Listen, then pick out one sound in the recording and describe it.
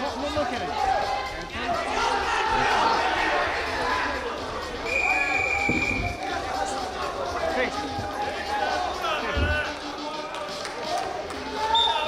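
A crowd of spectators shouts and cheers in a large echoing hall.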